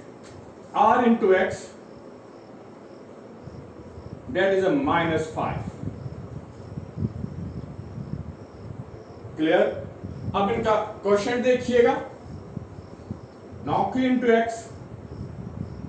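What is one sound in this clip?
A middle-aged man speaks calmly in short phrases, close by.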